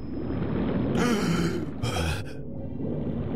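A weapon fires two short hissing bursts underwater.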